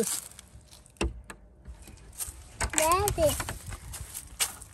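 A metal latch clicks and rattles on a wooden door.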